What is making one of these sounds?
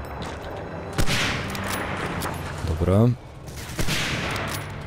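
A rifle fires a loud shot with a sharp echo.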